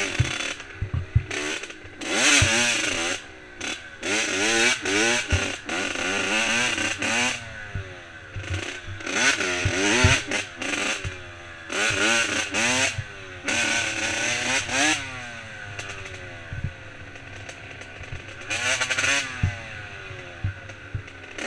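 Dirt bike tyres thump over bumps in a dirt trail.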